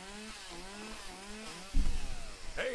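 A chainsaw revs up and down in the distance.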